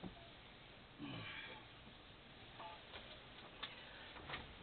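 A heavy curtain rustles as it is pushed aside.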